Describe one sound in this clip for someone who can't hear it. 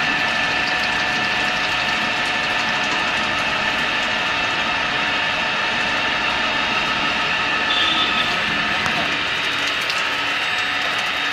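A milling cutter grinds steadily through metal with a high, whining hum.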